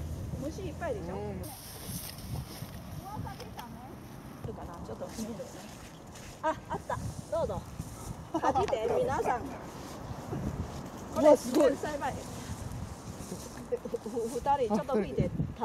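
A woman talks calmly nearby, outdoors.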